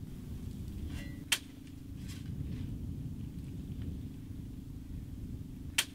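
A rake scrapes across dry earth.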